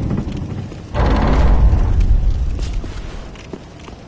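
Heavy wooden doors creak open.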